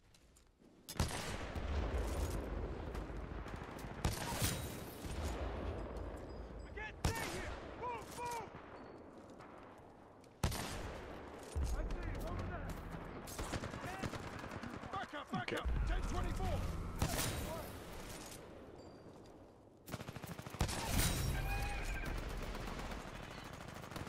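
Sniper rifle shots boom loudly, each followed by a rolling echo.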